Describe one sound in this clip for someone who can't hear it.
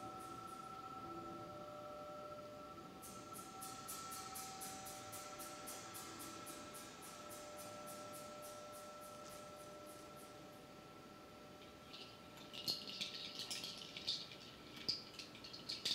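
Large gongs hum with a steady, shimmering ring.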